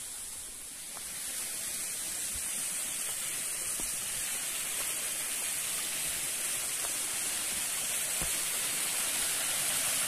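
Water rushes down a rocky waterfall nearby.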